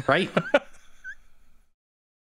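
A man laughs loudly into a microphone over an online call.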